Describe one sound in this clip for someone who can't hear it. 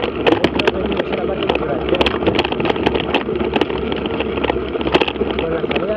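Tyres crunch and rattle over a gravel track.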